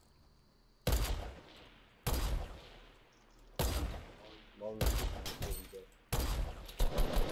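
A sniper rifle fires single loud shots.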